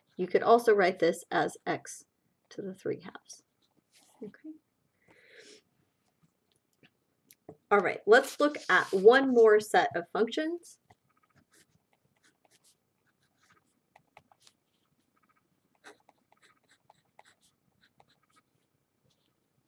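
A marker pen squeaks and taps on paper.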